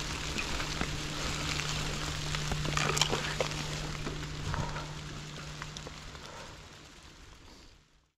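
Bicycle tyres roll and crunch over dry leaves and dirt.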